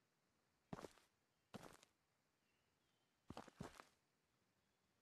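Footsteps scuff on sandy ground.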